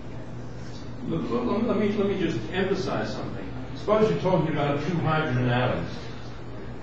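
An elderly man speaks calmly, lecturing.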